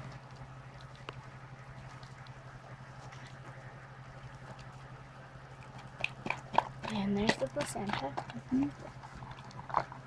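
A dog licks and chews wetly.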